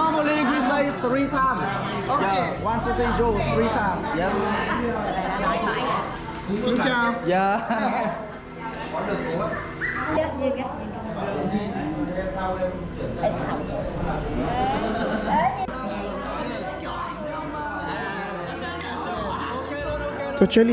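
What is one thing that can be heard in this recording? A group of men and women talk and shout with animation close by.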